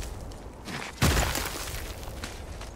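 A rushing swoosh of sliding down ice sounds.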